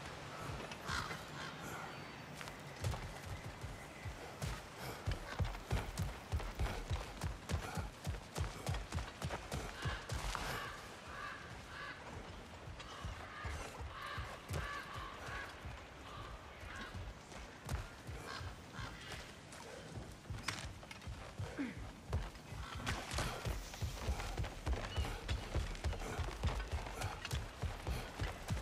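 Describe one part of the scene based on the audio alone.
Heavy footsteps thud steadily on stone and wooden boards.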